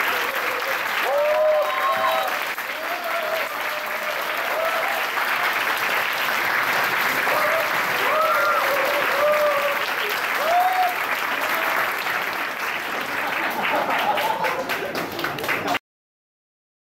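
A crowd of young men and women cheers and whoops loudly.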